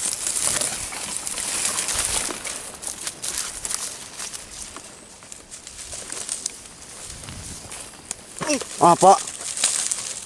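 Footsteps crunch on dry, cracked earth.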